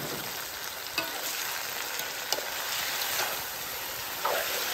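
A spoon scrapes and clinks against a metal pan.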